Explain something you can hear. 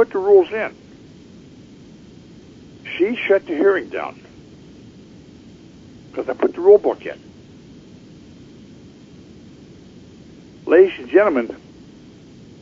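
An elderly man speaks calmly in short phrases, close to a microphone, with pauses between them.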